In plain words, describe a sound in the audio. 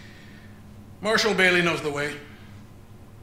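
A man speaks in a deep, measured voice.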